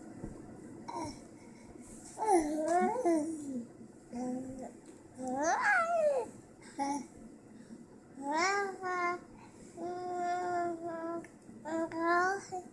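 A baby babbles and coos up close.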